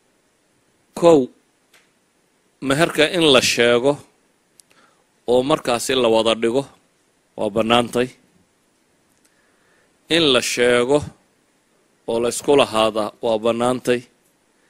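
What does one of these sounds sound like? A middle-aged man speaks calmly into a microphone, in short phrases with pauses.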